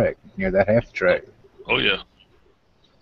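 A man speaks casually over an online call.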